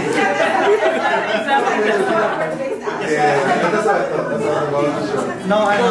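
A group of people laugh together.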